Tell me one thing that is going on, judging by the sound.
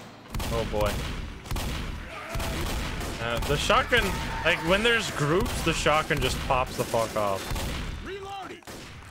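A shotgun fires in repeated loud blasts.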